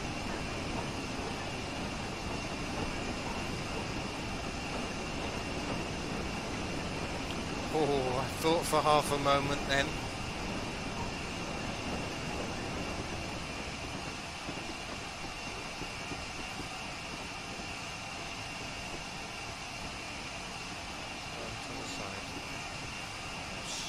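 A steam locomotive chugs steadily along the track.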